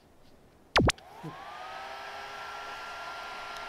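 A small electric fan motor whirs up to speed and hums steadily.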